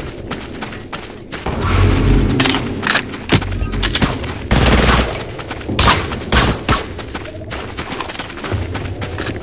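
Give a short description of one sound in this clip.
Gunfire rings out in sharp bursts.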